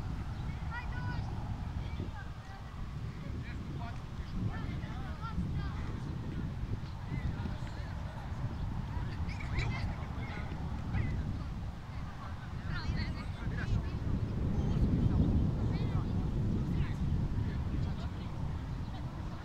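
Young players shout to each other in the distance.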